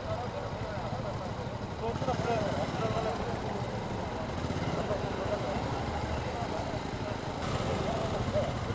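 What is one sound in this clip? Motorcycle engines idle with a low, steady rumble.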